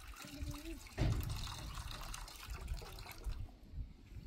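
Water pours and splashes into a metal bowl.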